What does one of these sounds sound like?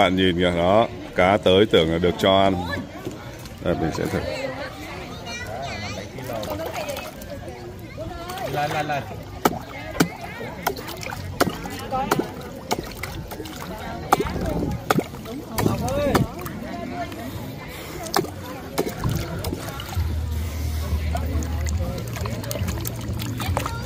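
Fish splash softly at the water's surface.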